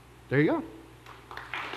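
A man says a few words through a microphone in a large hall.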